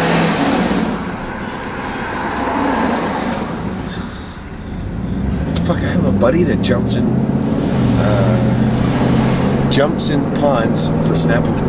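A car engine hums steadily from inside the vehicle.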